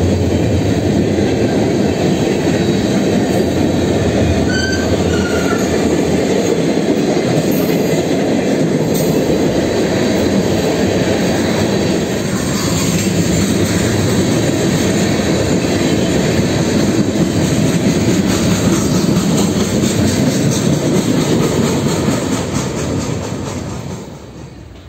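A long freight train rumbles and clatters past close by, then fades.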